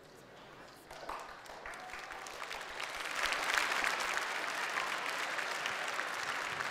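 People applaud in a room.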